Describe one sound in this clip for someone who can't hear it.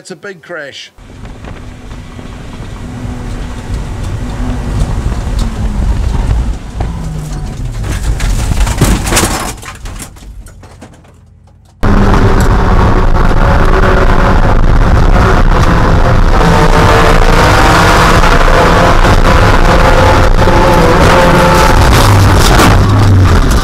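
A race car engine roars and revs loudly from inside the cabin.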